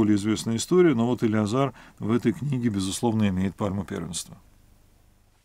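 A middle-aged man speaks calmly and clearly into a nearby microphone.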